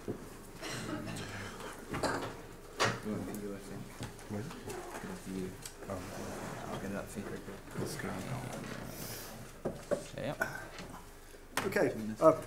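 Quiet voices murmur nearby.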